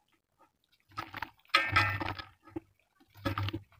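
Wet clay crumbles and splashes into water.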